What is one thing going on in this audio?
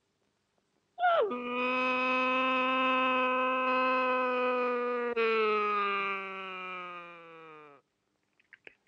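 A young man sings a long, loud held note that slowly falls in pitch.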